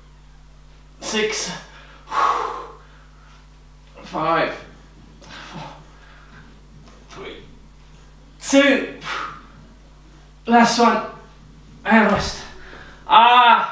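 A man speaks in short, breathless bursts close by.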